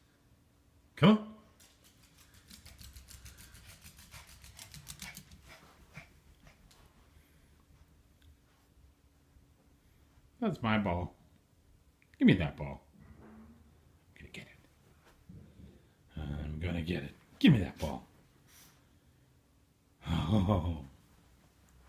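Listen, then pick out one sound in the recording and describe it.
A small dog barks in short, sharp yaps.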